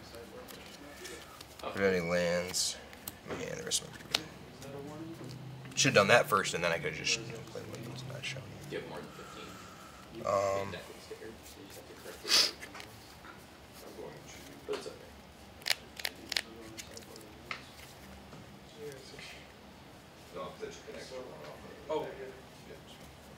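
Playing cards tap and slide onto a soft table mat.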